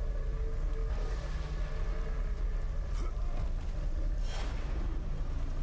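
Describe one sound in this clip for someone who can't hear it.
Thunder cracks sharply close by.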